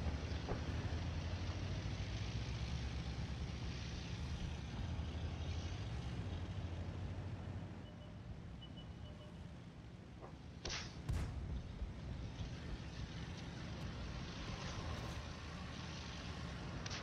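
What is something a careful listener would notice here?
A tank engine rumbles and its tracks clank steadily.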